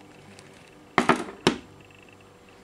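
A phone is set down on a wooden table with a knock.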